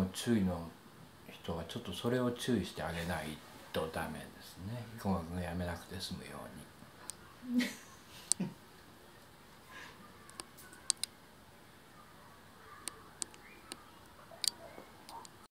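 A young man talks quietly nearby.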